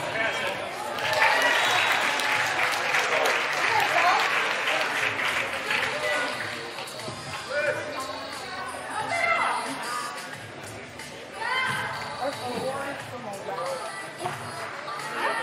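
Young women shout and call out to each other in an echoing hall.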